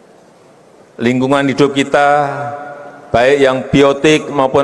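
A man speaks with animation into a microphone through a loudspeaker in a large hall.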